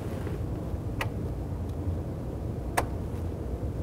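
A control knob clicks as it turns.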